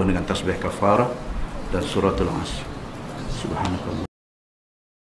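A middle-aged man speaks with animation into microphones.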